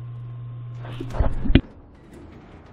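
A metal gate rattles and clanks open.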